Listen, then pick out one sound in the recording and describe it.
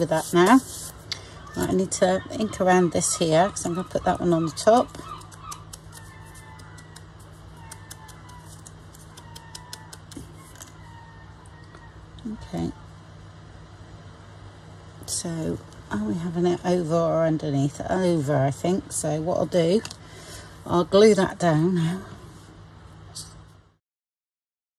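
Card and paper rustle and tap as they are handled.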